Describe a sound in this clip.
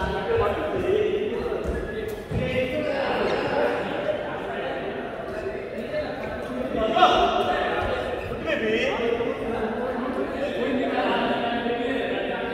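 Men talk and call out with animation in a large echoing hall.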